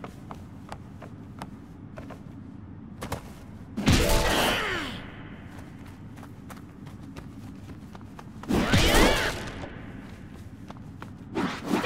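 Footsteps patter quickly on wooden planks and dirt.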